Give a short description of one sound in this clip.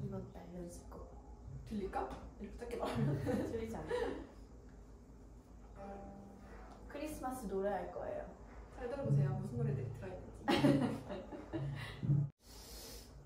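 A second young woman answers and laughs close by.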